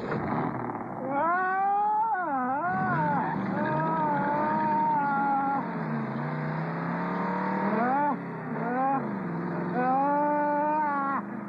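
A man screams in terror.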